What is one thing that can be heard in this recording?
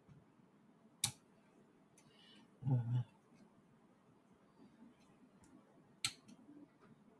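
Plastic parts click as a hand presses on electronics.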